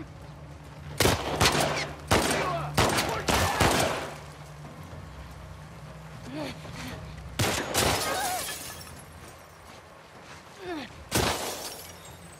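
Gunshots crack loudly outdoors.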